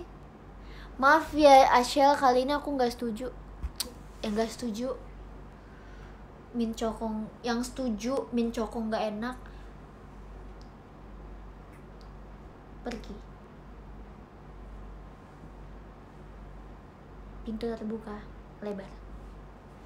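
A young woman talks animatedly and close by.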